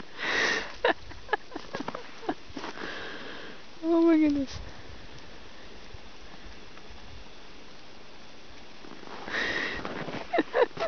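Horses gallop through snow, their hooves thudding softly.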